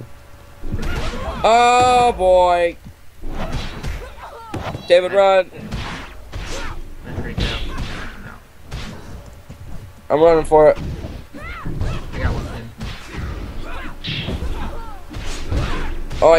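Swords slash and clang in a fast fight.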